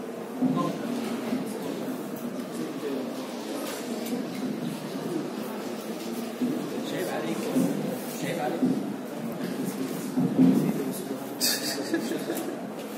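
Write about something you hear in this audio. A man speaks steadily through a microphone in an echoing room.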